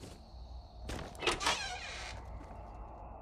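A wooden door swings open with a creak.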